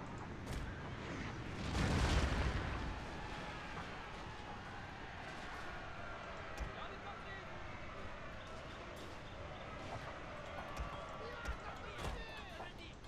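Gunshots crack now and then.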